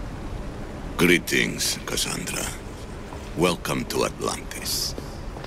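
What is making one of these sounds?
An elderly man speaks calmly and warmly.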